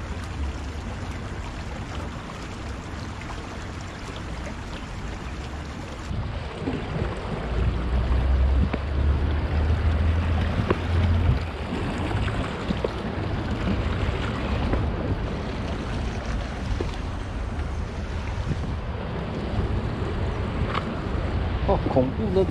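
Water flows and laps around stones.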